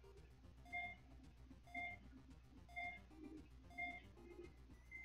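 A video game plays short, evenly spaced electronic blips.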